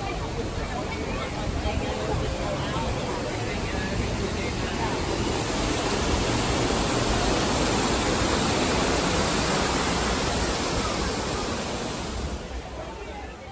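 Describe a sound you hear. A waterfall rushes and splashes steadily nearby.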